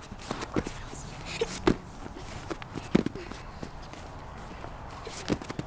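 Bare feet thump softly on a mat.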